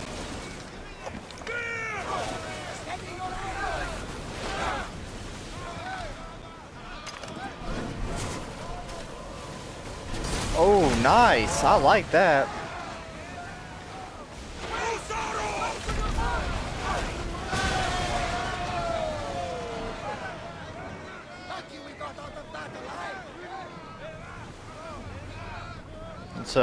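Waves splash against a wooden ship's hull.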